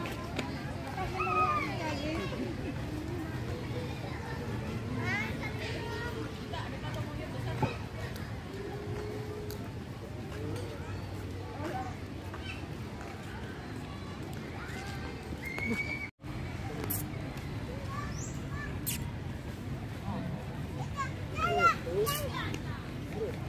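Children shout and call out nearby.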